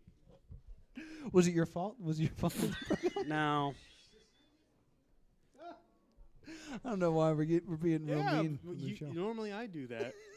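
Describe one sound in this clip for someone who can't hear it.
A young man laughs heartily into a close microphone.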